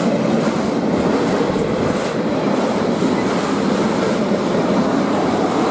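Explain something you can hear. A freight train rumbles loudly past on the tracks.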